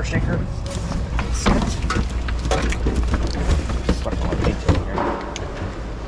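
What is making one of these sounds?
Objects clatter and rustle as they are rummaged through in a box.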